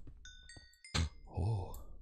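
Gems pop out and clink.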